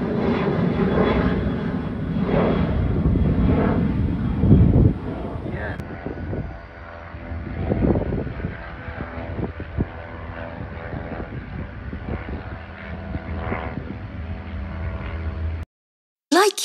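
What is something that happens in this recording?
A jet plane drones steadily high overhead.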